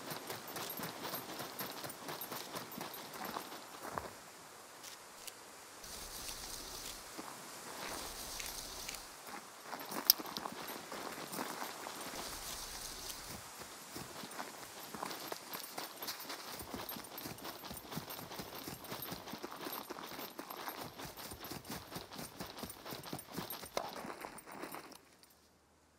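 Footsteps crunch over dry ground and brush through grass.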